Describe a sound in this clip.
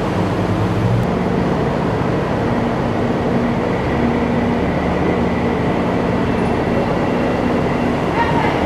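An amphibious assault vehicle's diesel engine roars and echoes as it climbs into a ship's flooded well deck.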